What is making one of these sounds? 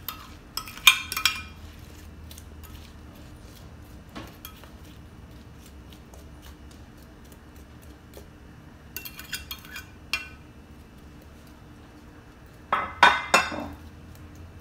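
A spoon scrapes against a glass dish.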